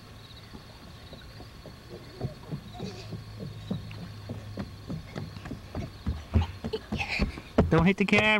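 Footsteps thump on a wooden boardwalk.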